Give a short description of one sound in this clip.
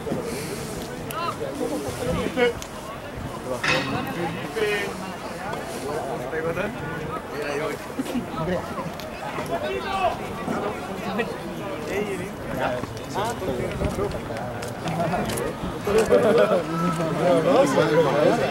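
Several men shout and call out across an open field.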